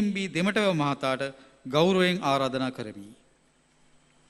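A middle-aged man speaks calmly into a microphone, heard over loudspeakers in a large hall.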